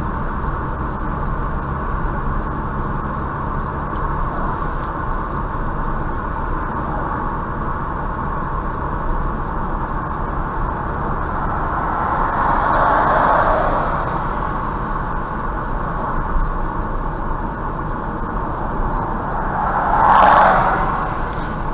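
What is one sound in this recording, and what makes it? Tyres roar steadily on the road from inside a moving car.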